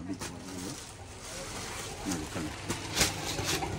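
Fabric rustles as cloth is handled.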